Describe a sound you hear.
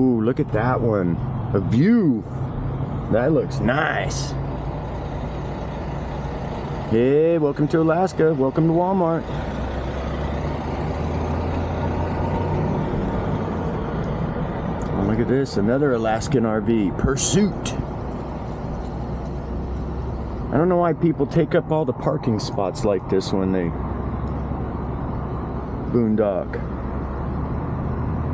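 A car engine hums low and steady while driving slowly.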